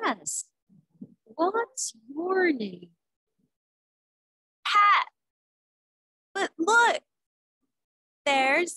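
A woman speaks in short, lively, sing-song phrases over an online call.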